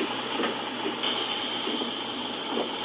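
Bus doors shut.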